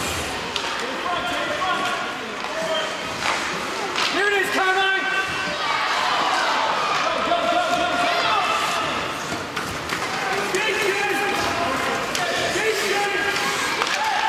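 Children shout across a large echoing ice rink.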